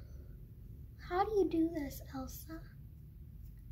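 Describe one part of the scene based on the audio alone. A young girl speaks briefly close by.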